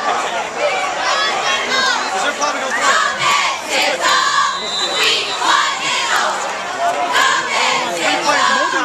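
A crowd of men and women chatters and calls out nearby in the open air.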